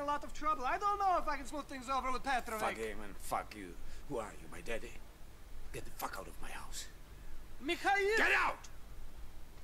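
A man speaks angrily and emotionally up close.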